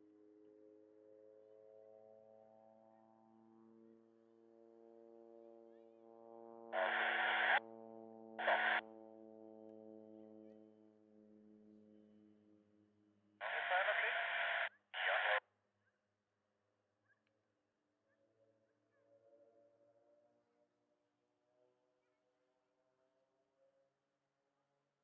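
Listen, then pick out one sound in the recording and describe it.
Propeller planes drone overhead, their pitch slowly sliding lower as they pass.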